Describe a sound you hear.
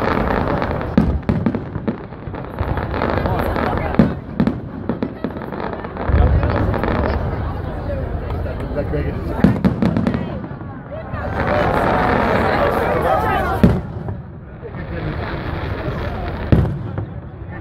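Fireworks burst with sharp booms and crackles.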